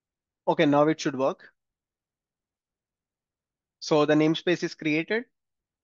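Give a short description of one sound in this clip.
A man speaks calmly into a close microphone, in two short bursts.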